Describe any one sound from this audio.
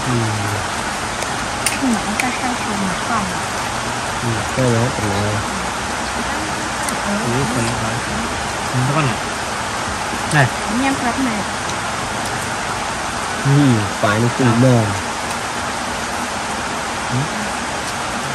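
A middle-aged woman talks calmly nearby.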